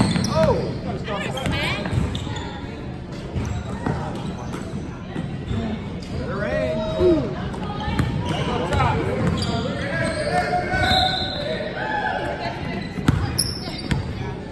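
Children and adults chatter and call out in an echoing gym.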